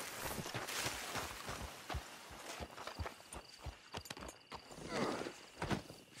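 A knife cuts and tears through an animal hide.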